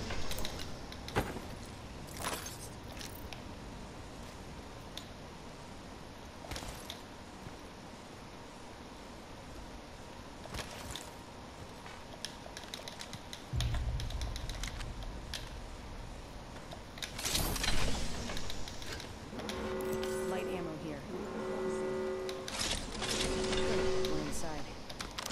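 Short metallic clicks sound as items are picked up.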